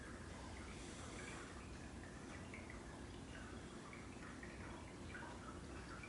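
A cat purrs softly up close.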